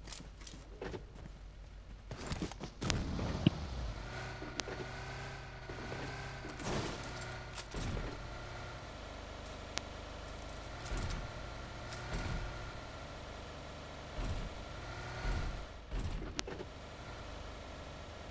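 A car engine hums steadily as a car drives over rough ground.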